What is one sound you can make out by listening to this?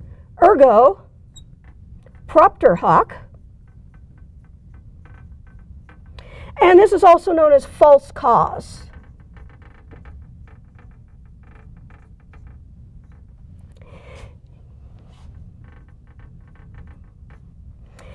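A marker squeaks faintly on a glass board.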